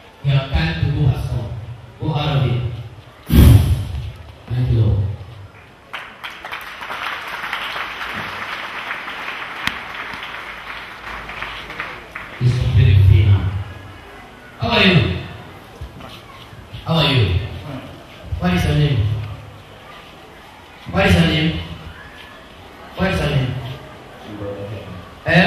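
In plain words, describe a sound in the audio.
A man speaks loudly into a microphone in short bursts.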